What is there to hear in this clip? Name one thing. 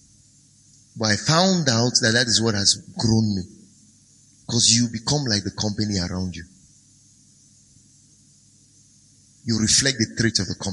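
A man speaks calmly and clearly into a close microphone, with pauses.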